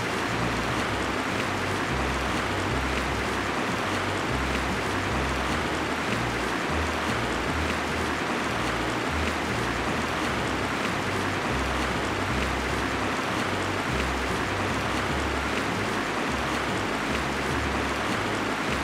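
Wind rushes steadily.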